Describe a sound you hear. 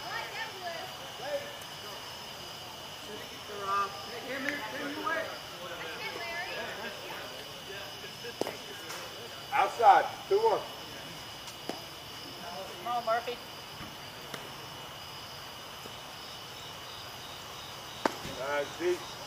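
Men call out and shout across an open field.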